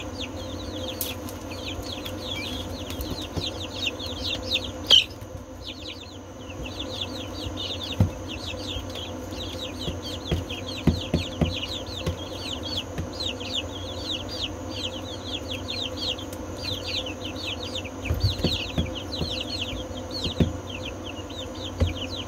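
Chicks scratch and peck in loose bedding.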